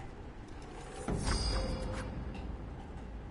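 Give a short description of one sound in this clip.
A sword swishes sharply through the air.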